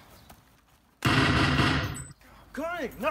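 A rifle fires a loud burst.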